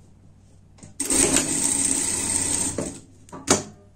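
A sewing machine runs in a quick, steady whir.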